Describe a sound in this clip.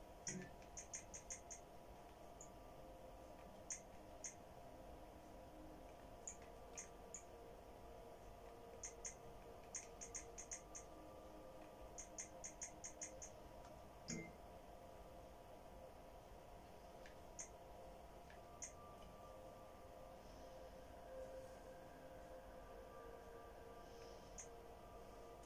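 Short, soft menu ticks click one after another, sometimes in quick bursts.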